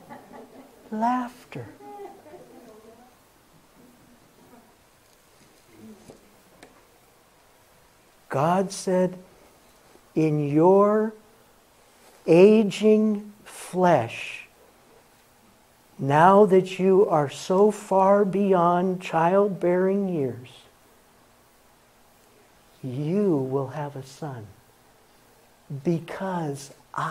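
An elderly man speaks with animation into a handheld microphone, pausing between phrases.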